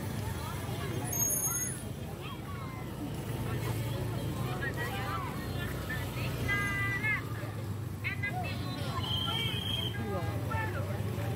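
A crowd of people chatter nearby outdoors.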